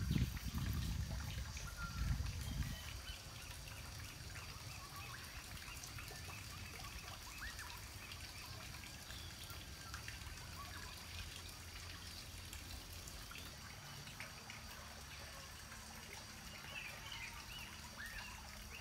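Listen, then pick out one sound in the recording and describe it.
Hands pat and press soft wet clay.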